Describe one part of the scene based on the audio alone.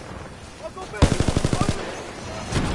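A rapid burst of gunfire rattles.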